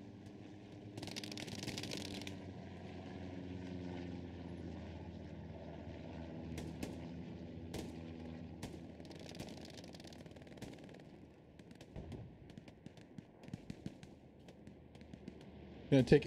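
Shells burst with dull booms in the distance.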